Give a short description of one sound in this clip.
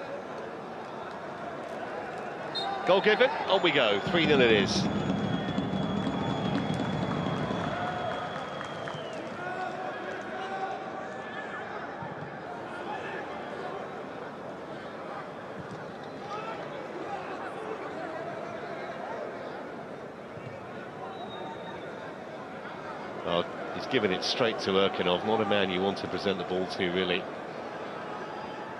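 A crowd murmurs and cheers in a large stadium.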